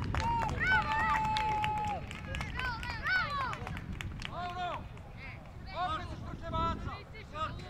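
Young boys shout and cheer excitedly outdoors.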